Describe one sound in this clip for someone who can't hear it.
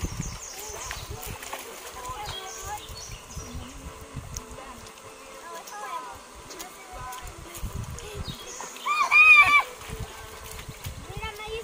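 Children's feet splash in shallow water.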